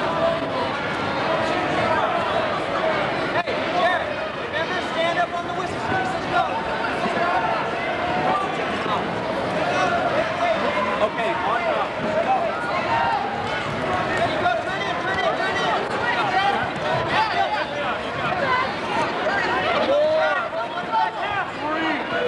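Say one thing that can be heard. A large crowd chatters and shouts throughout a big echoing gym.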